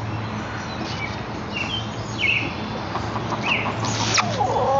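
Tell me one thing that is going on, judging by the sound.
Chickens cluck and chirp close by.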